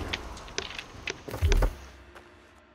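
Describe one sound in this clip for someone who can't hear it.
A heavy war hammer strikes with loud thuds.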